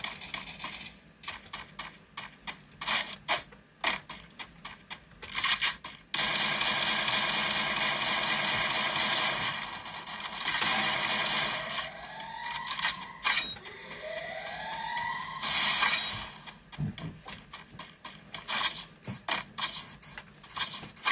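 Gunfire pops from a phone game's small speaker.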